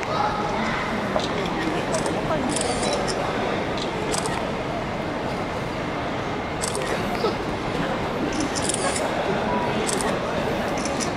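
A crowd of people chatters and laughs nearby.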